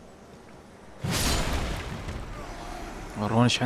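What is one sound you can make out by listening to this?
A magical whoosh rises and fades.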